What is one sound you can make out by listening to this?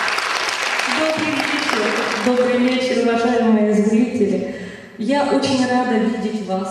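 A woman sings into a microphone, amplified through loudspeakers.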